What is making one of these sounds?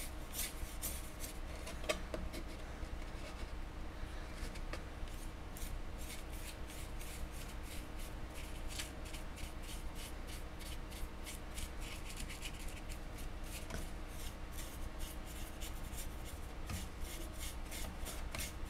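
A small brush scrapes and scratches lightly across a metal surface, close by.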